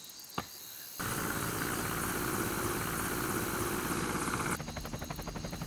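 A helicopter's rotor thumps and roars overhead.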